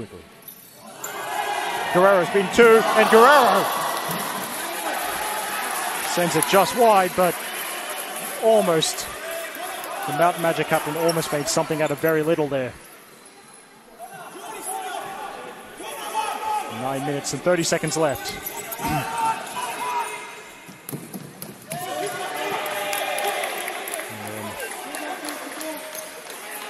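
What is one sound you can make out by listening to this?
Men and boys shout and cheer loudly in a large echoing hall.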